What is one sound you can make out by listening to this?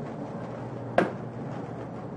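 A metal pan clanks down onto a stovetop.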